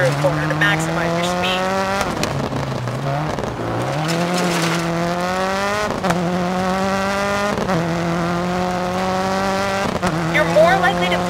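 A rally car engine revs hard, rising in pitch and dropping with each gear change.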